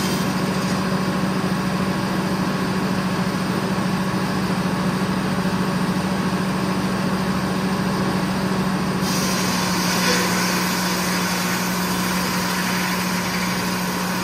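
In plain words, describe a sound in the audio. Sawmill machinery hums and rumbles loudly and steadily.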